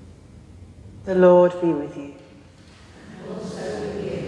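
A woman sings a chanted phrase in a large echoing hall.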